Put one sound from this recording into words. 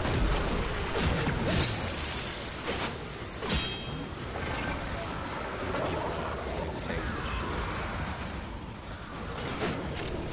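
Rapid gunfire and blasts crackle throughout.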